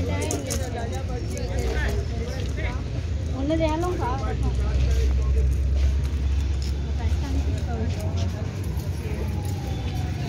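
Metal jewellery clinks softly as a hand handles it.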